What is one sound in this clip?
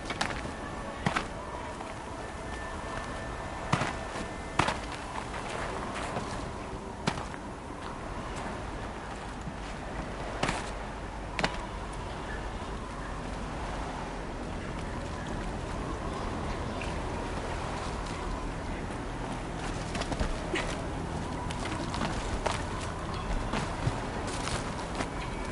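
A character's hands grab onto rock with sharp knocks.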